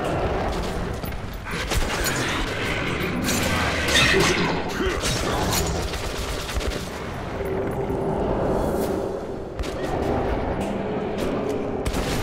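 Monsters snarl and screech close by.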